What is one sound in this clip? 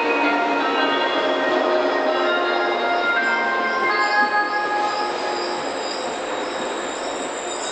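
A train rushes past close by, its wheels rumbling and whining.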